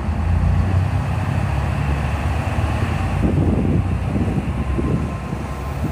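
A diesel train rolls in closer, its engine growing louder.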